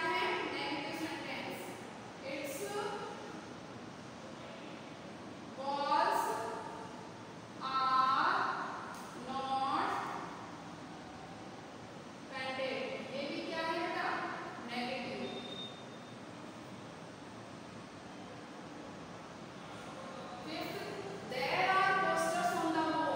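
A young woman speaks calmly and clearly, as if teaching, close by.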